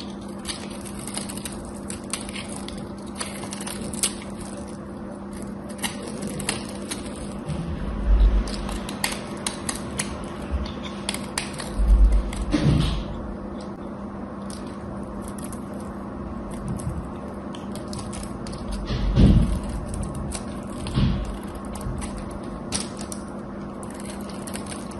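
A knife scrapes and shaves a bar of soap with crisp, crackly clicks.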